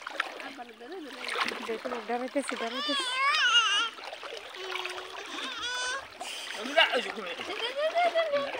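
Toddlers squeal and babble with high voices.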